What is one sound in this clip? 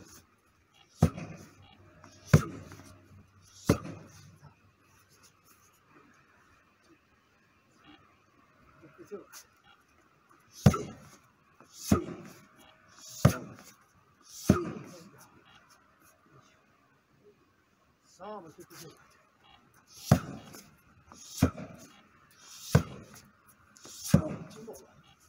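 A young man breathes out sharply with each strike.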